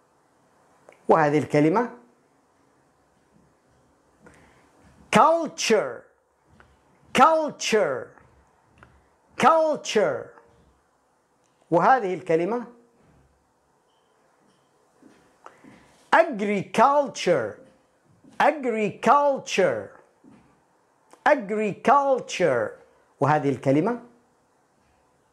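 A man speaks clearly and calmly into a close microphone, in short phrases with pauses.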